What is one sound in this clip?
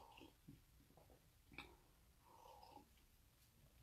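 A man sips a drink quietly.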